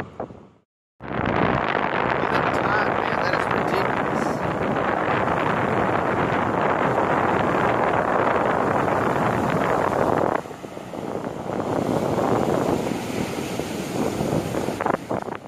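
Waves crash and roar onto a beach.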